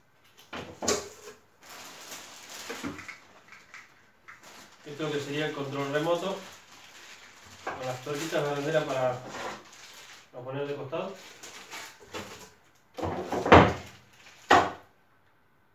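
Cardboard and equipment parts knock and clatter.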